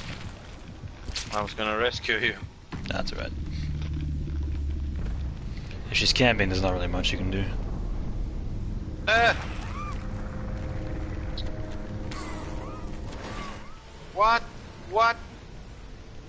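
A young man talks and exclaims with animation into a microphone.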